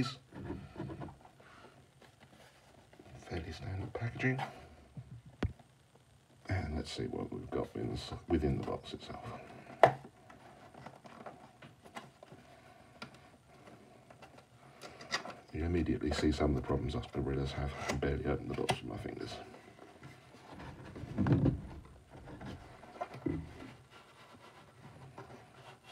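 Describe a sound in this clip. A cardboard box rustles and scrapes as hands turn it.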